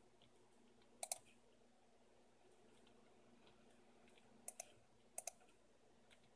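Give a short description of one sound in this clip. Short, sharp game sound effects click from a computer speaker now and then.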